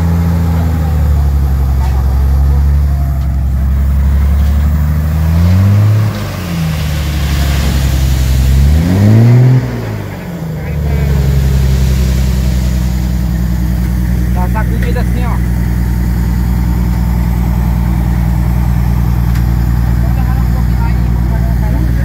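A truck's diesel engine idles loudly and revs up and down.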